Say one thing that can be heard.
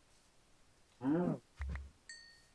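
A cow moos.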